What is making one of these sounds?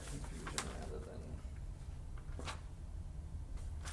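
Papers rustle as a man handles them.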